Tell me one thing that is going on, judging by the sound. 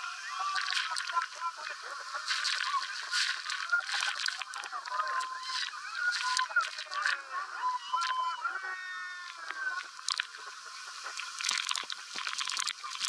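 Water splashes and sprays heavily over people.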